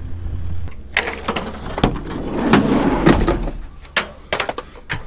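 A plastic heater rattles as it is picked up.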